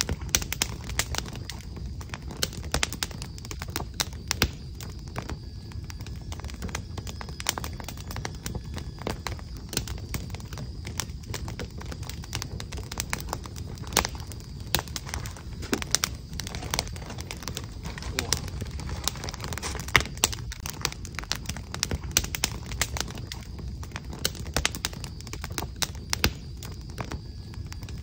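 Keys tap quickly and unevenly on a keyboard close by.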